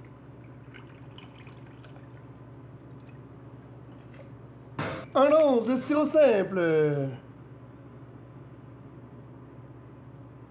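Liquid trickles into a small metal cup.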